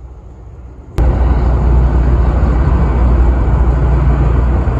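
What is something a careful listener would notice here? An aircraft roars low overhead.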